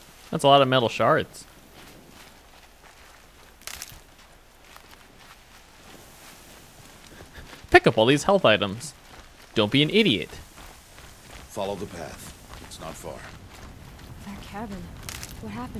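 Footsteps run softly through grass.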